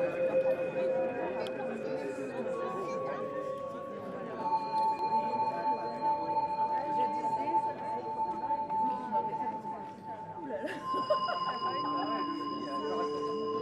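A man plays sustained electronic tones on a synthesizer.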